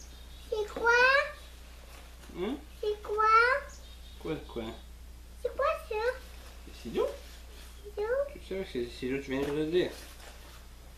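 A young child talks in a high, lively voice nearby.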